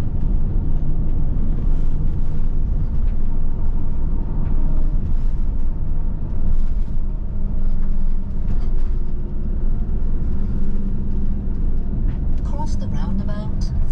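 A car engine hums steadily as the car drives along a road.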